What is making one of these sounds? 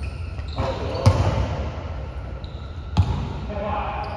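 A basketball bounces with echoing thuds in a large hall.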